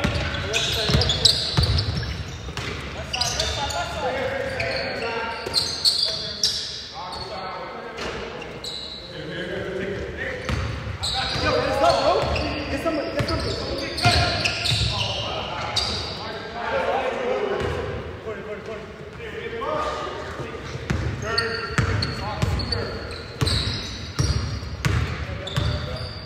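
A basketball bounces on a hard court, echoing in a large hall.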